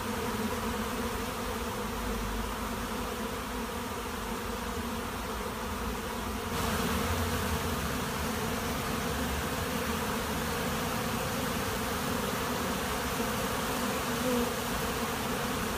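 A large swarm of bees buzzes loudly and steadily close by.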